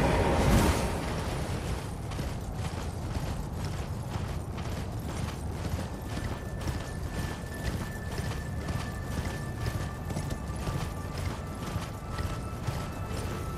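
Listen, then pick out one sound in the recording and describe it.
A horse's hooves gallop at a steady beat.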